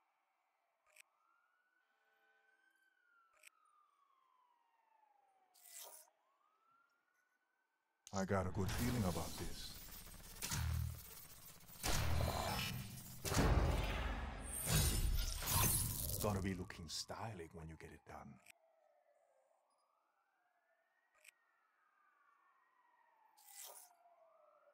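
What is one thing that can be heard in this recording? Short electronic menu blips sound as a selection moves.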